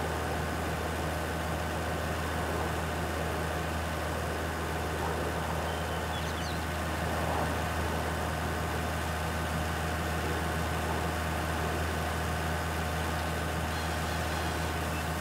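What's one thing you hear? A tractor engine hums steadily at low speed.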